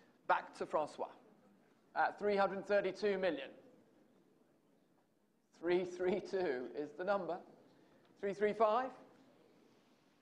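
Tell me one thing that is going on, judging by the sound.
A man speaks into a microphone in a large hall, announcing in a measured voice.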